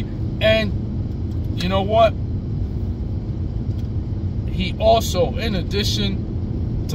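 A man speaks calmly and close by, in short bursts.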